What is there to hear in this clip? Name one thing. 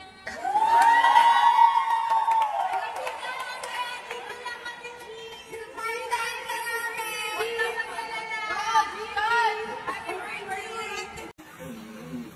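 A group of young women sing together loudly.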